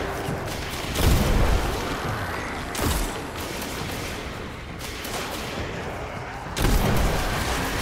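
A loud explosion booms and crackles.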